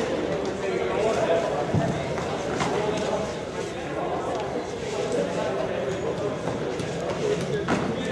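A ball clacks off sticks now and then.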